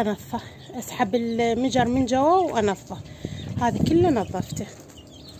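A rooster crows nearby.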